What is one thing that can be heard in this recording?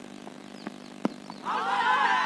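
A cricket bat strikes a leather ball.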